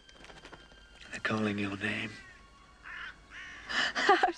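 A young woman laughs softly nearby.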